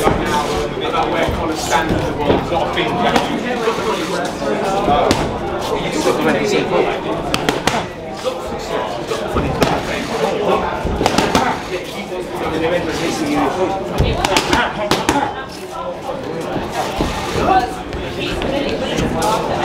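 Boxing gloves thud against punch mitts in quick bursts.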